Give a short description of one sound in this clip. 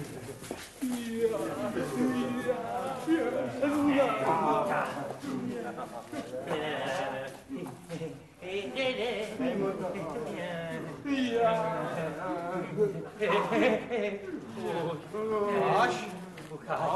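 A young man reads out loudly with animation.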